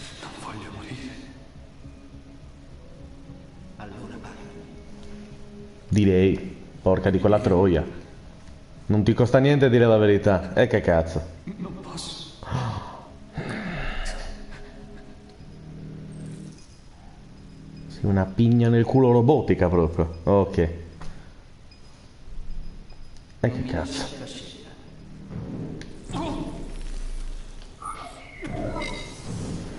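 A man talks calmly close to a microphone.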